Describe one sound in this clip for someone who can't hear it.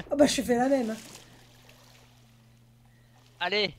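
Water splashes as a swimmer surfaces.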